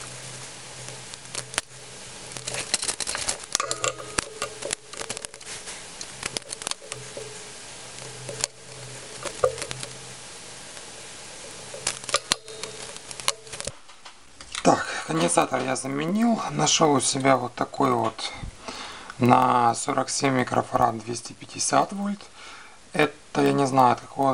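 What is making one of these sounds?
Small plastic and metal parts click and rattle as they are handled.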